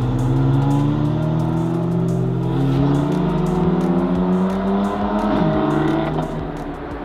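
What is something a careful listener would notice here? A race car engine idles and revs nearby.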